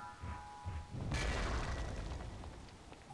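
A blade swishes sharply through the air.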